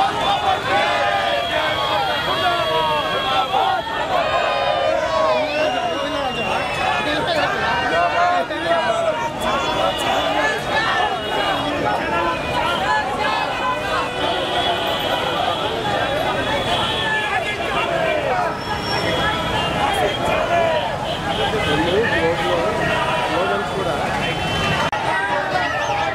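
Many voices talk and call out all around.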